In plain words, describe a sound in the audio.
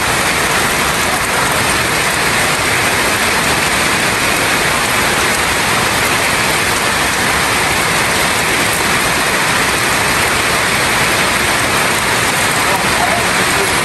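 Rain drips and splashes from a roof edge.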